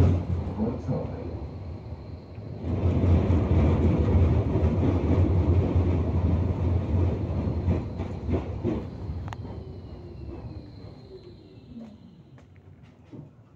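A tram rumbles along its rails, then slows to a stop.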